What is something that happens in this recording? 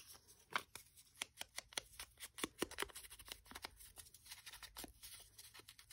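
A small ink pad taps lightly on paper, over and over.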